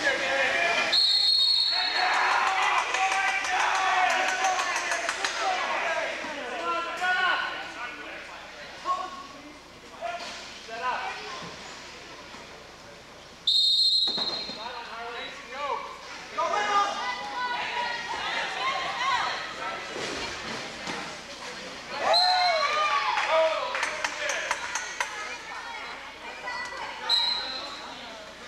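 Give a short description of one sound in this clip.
A referee blows a sharp whistle several times.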